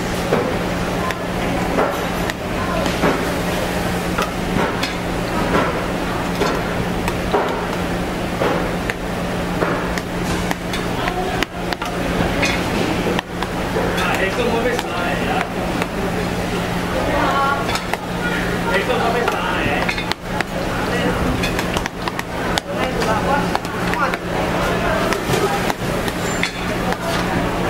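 A knife scrapes and slices through soft food on a metal tray.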